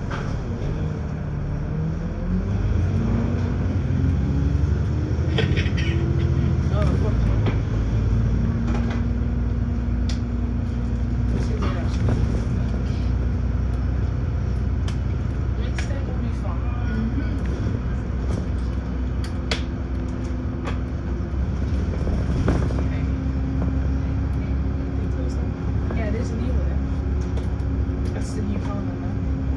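A bus engine rumbles steadily, rising in pitch as it speeds up.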